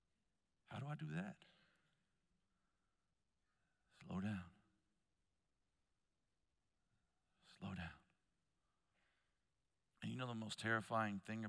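A man speaks through a headset microphone in short bursts with long pauses.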